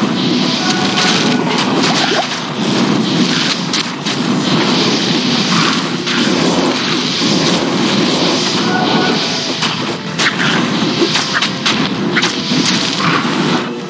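Fireballs roar and burst in a game battle.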